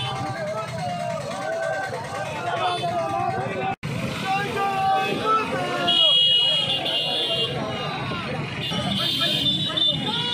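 Motorbike engines idle and rumble.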